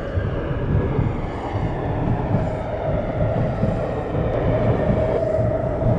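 A subway train rumbles steadily along the tracks, heard from inside the car.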